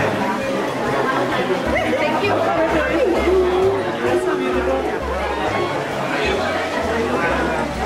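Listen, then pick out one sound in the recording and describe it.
A middle-aged man speaks warmly and laughs close by.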